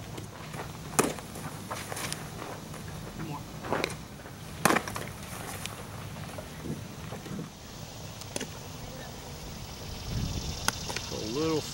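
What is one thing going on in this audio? A baseball smacks sharply into a leather glove.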